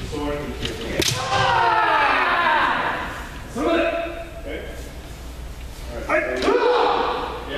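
Bamboo practice swords strike with sharp cracks.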